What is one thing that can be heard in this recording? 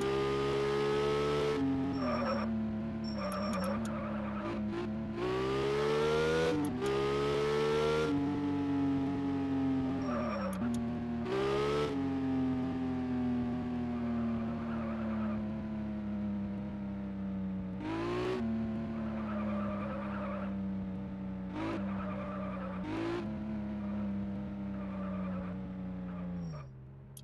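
A simulated sports car engine revs up and down.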